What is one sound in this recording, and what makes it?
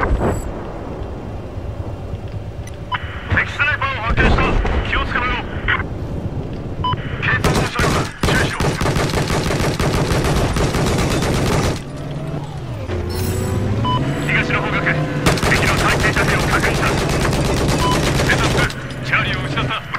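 A vehicle engine hums steadily as it drives along a road.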